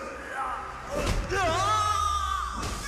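A body slams hard onto the ground.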